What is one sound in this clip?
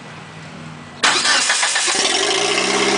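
A car engine cranks and fires up.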